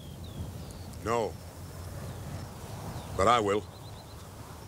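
An elderly man answers briefly in a low voice outdoors.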